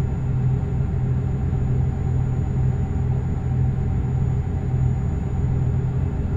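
Truck tyres rumble over a snowy road.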